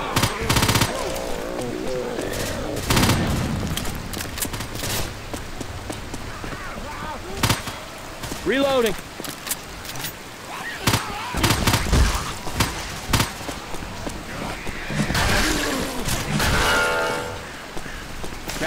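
Gunshots fire in bursts.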